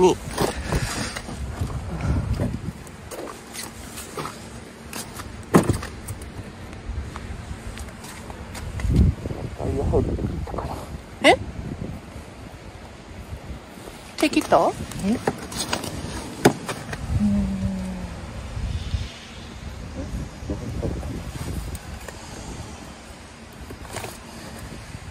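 Metal snow chain links clink and rattle against a tyre.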